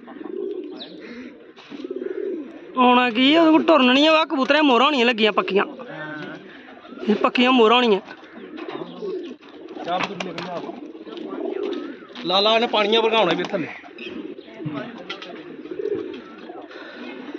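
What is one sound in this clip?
A pigeon coos softly nearby.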